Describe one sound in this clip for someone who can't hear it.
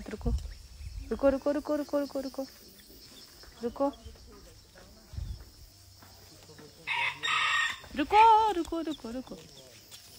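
A small chick chirps nearby.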